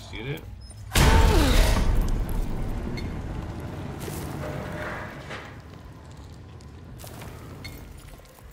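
A loud explosion booms and fades into roaring flames.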